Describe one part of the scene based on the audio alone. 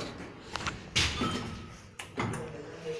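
An elevator button clicks as it is pressed.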